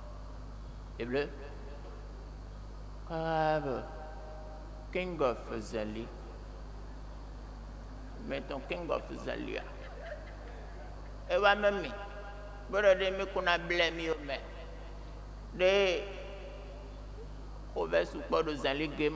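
A young man speaks expressively through a body microphone, pausing between phrases.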